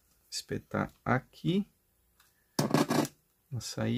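A cable plug clicks into a socket.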